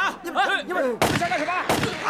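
A young man speaks loudly.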